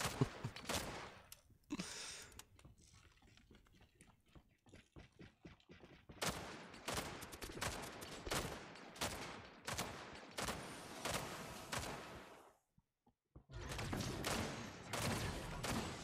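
Weapons fire in rapid bursts, with sharp impacts.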